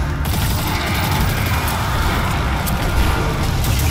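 Rapid gunfire bursts.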